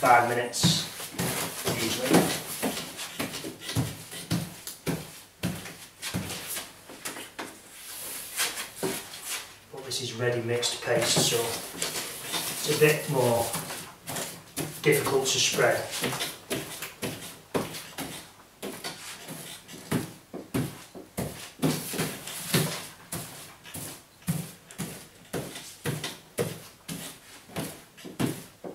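A middle-aged man explains calmly nearby.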